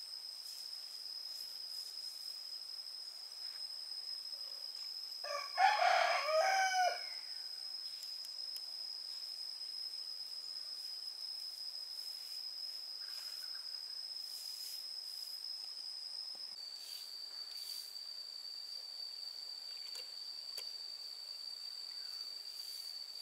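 A stiff brush scrubs and swishes across a rough cement surface.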